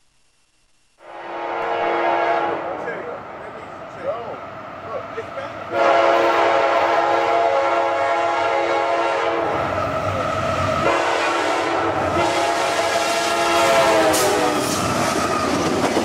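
A locomotive horn blares loudly in long blasts as a train approaches.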